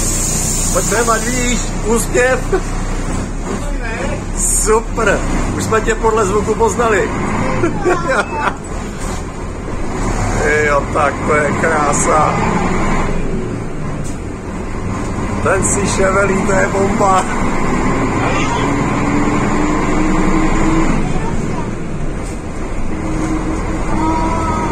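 An old diesel city bus engine drones as the bus drives.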